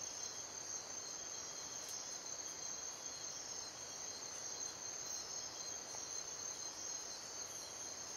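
An animal shuffles through dry leaves on the ground.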